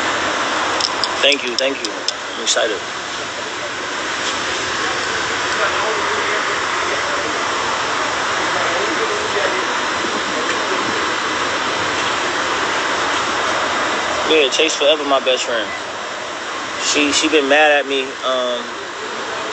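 A man speaks casually, close to a phone's microphone.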